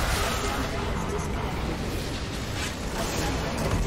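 A game structure explodes with a deep rumbling blast.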